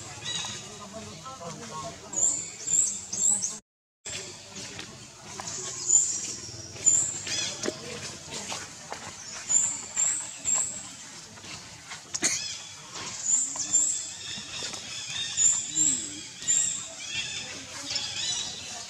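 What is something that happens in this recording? Young monkeys squeak and squeal close by.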